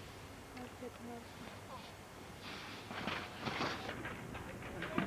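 Skis scrape and hiss over packed snow close by.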